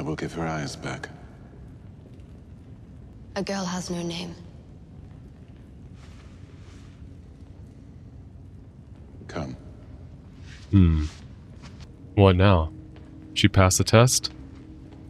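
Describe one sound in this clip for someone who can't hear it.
Young men talk casually through microphones in short bursts.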